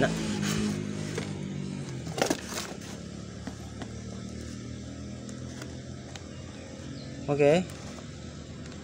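A plastic casing knocks and rubs lightly as hands handle it.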